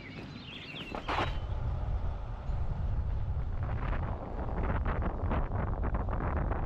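A car rolls along a road with a steady low rumble.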